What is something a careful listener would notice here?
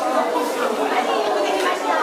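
A woman laughs and talks nearby.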